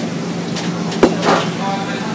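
A glass bottle clinks against a glass.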